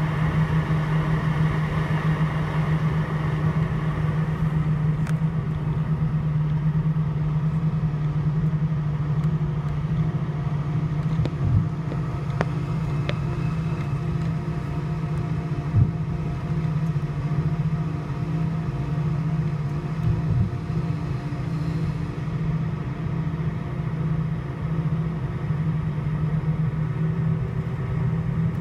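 Aircraft wheels rumble and thump over the runway.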